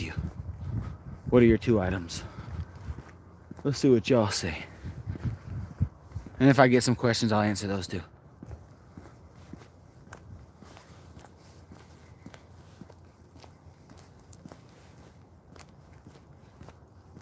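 Footsteps walk along a paved path.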